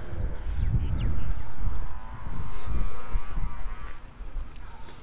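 Wind rumbles against a microphone outdoors.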